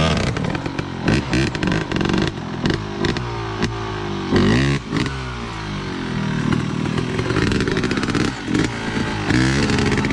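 Loose rocks and dirt clatter down a slope.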